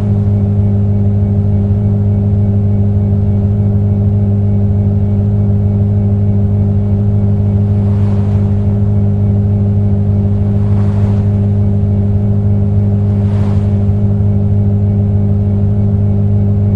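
A car engine hums steadily at a constant speed.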